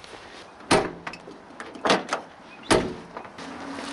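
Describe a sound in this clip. A metal door handle clunks and rattles loudly several times.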